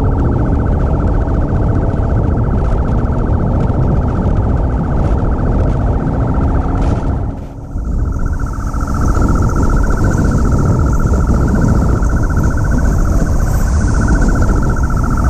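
A three-cylinder Triumph Tiger 800 motorcycle rides at speed.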